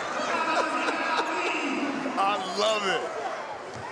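A group of men laugh heartily.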